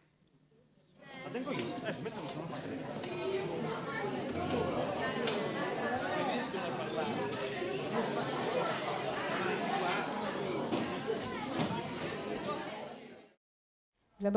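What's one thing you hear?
A crowd of people chatter all at once in a busy room.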